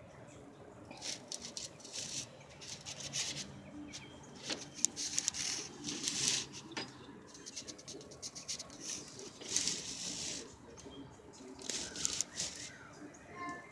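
A small bird rustles and hops through dry leaves and twigs close by.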